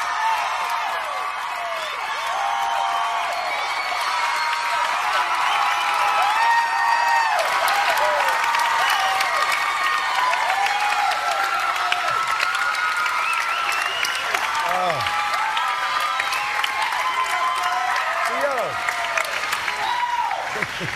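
A large crowd cheers and screams loudly in a big hall.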